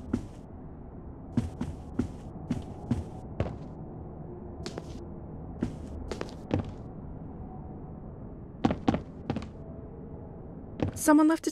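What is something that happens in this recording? Footsteps tap steadily across a floor.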